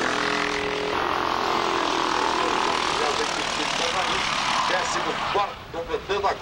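Kart engines buzz loudly as they race past.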